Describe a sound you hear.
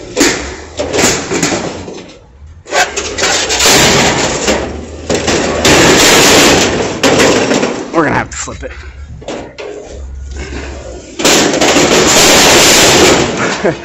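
Perforated steel shelf racks scrape and clang as they are dragged and handled.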